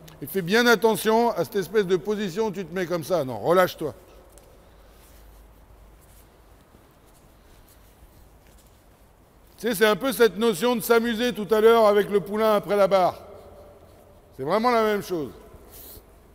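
A man talks loudly in a large echoing hall.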